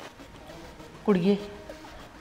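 A woman speaks briefly close by.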